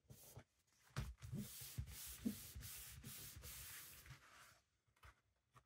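Hands rub and smooth paper flat on a table.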